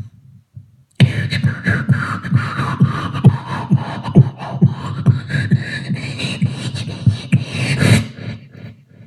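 A man raps into a microphone, amplified through loudspeakers.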